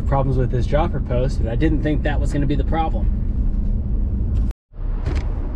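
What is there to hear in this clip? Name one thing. A vehicle's cabin rumbles low while driving.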